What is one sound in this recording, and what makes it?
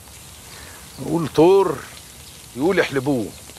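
An older man speaks calmly nearby.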